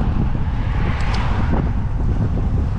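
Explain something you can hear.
A car passes close by on the road.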